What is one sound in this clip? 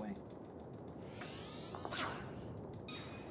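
A rising, shimmering magical whoosh rings out in a video game.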